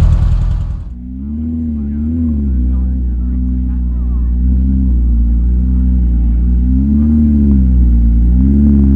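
A sports car engine idles with a deep, wavering hum.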